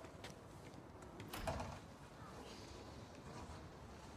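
A man pushes open a glass door with a dull clunk.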